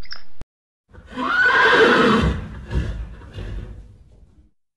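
A horse whinnies.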